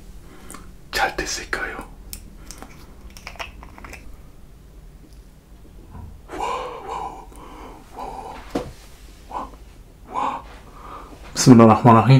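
A young man speaks softly and close to the microphone.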